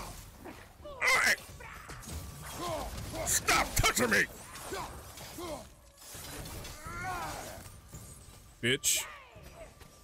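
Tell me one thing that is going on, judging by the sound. Flaming blades whoosh through the air in fast swings.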